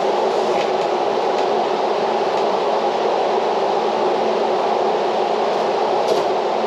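Floor fans blow with a steady whooshing roar.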